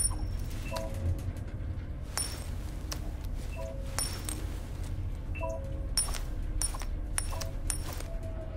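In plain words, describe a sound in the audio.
A metal coin clinks and rings repeatedly as fingers flip it.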